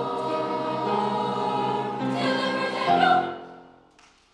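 A large choir sings a sustained chord that rings out in a large hall.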